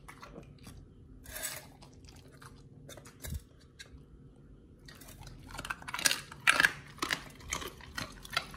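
Raw meat slaps and squelches against a metal bowl.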